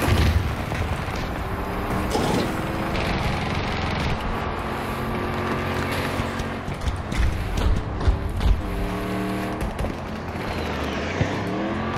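An armoured vehicle's engine rumbles and whines as it drives.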